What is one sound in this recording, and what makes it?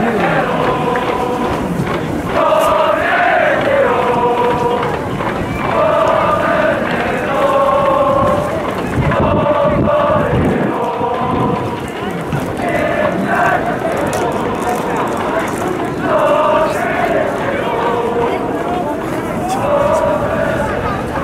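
A large crowd chants and sings in rhythm outdoors.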